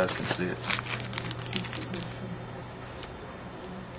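Trading cards slide and shuffle against one another.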